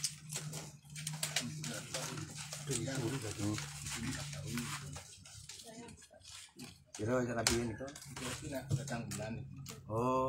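Several adults talk casually nearby.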